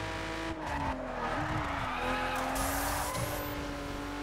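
Tyres screech as a car drifts through a turn.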